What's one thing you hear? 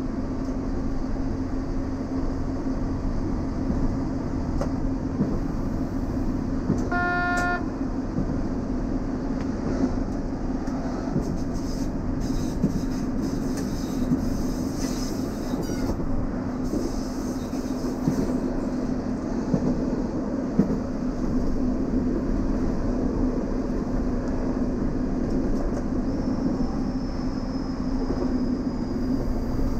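A diesel railcar's engine drones under way.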